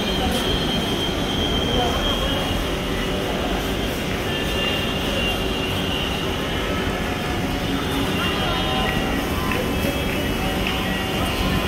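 A crowd of people murmurs nearby.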